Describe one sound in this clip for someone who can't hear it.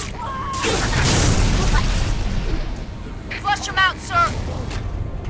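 A heavy weapon swings with a whoosh and thud.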